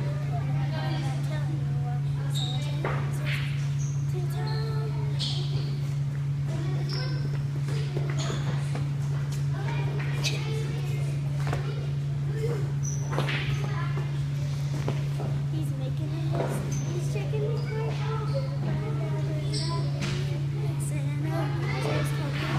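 Young girls talk and giggle close by.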